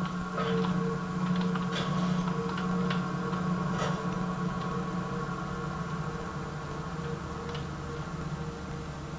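Game sounds hum and crackle from small speakers.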